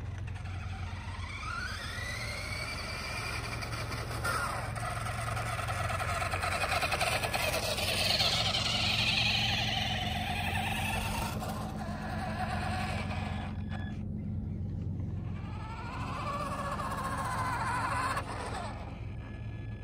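A small electric motor whines, rising and falling in pitch.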